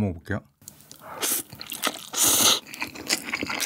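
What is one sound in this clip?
A young man slurps noodles loudly.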